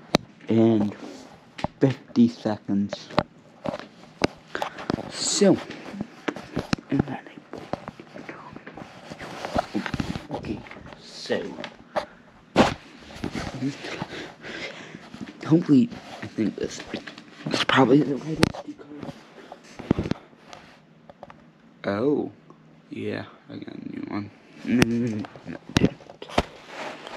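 Fingers bump and rub against a phone.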